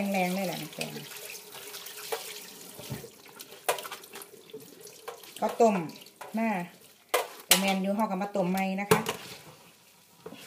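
Wet leaves squelch as hands squeeze them in a strainer.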